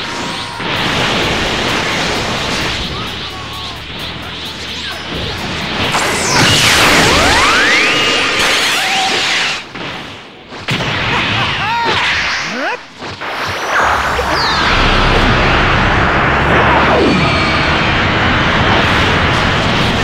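Energy blasts whoosh and roar in a fast video game fight.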